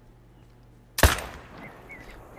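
A rifle shot cracks once and echoes.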